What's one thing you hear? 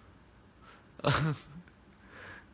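A young man laughs close to a phone microphone.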